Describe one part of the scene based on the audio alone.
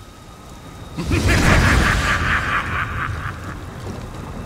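A fiery spell bursts with a loud whoosh.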